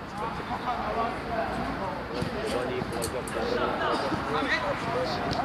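Young men shout and call out to each other across a playing field.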